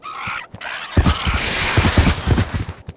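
A heavy weapon blasts with a roaring burst.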